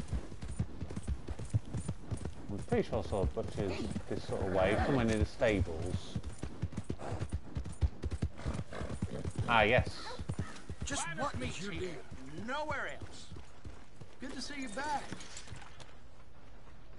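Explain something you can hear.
A horse's hooves clop steadily on a dirt road.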